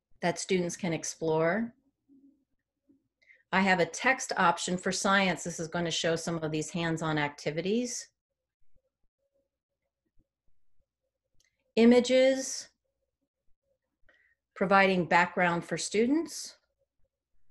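A woman speaks calmly over an online call, in short bursts with pauses.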